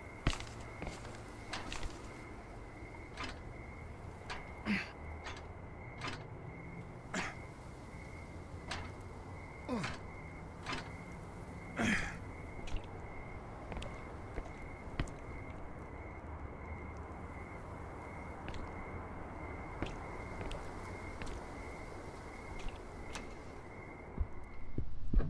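Footsteps clank on metal stairs and a walkway.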